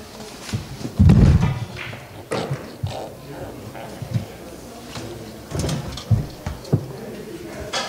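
Billiard balls knock together and roll across the table.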